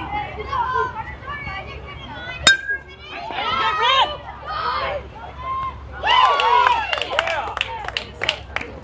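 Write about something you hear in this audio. Children shout and cheer excitedly nearby outdoors.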